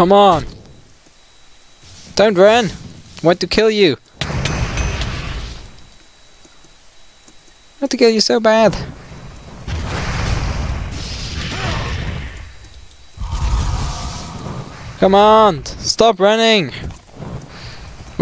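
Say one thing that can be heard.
Sword blows land in a fight.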